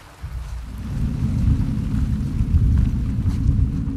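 Footsteps rustle softly through low plants.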